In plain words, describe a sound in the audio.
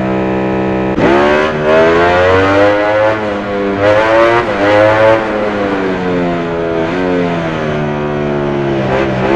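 A motorcycle engine's revs rise and fall sharply as it shifts gears and slows.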